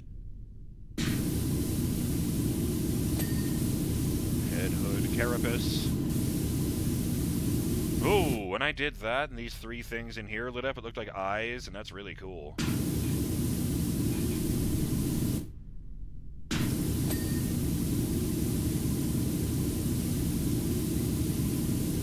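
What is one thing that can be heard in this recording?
A pressure washer sprays water with a steady, rushing hiss.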